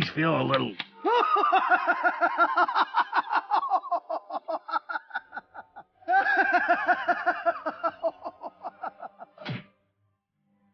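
A cartoon jester cackles with loud, shrill laughter.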